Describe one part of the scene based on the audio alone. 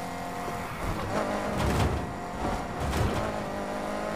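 A car slams into another car with a loud crunch.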